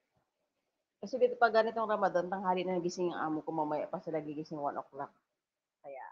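A middle-aged woman speaks calmly into a headset microphone over an online call.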